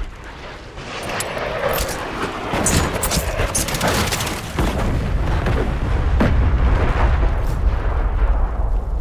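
Gunshots bang sharply in quick bursts.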